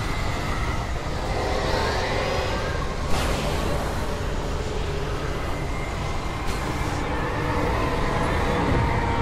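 Strong wind roars and howls steadily.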